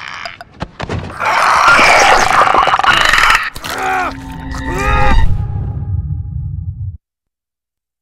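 A creature shrieks and gurgles loudly during a struggle.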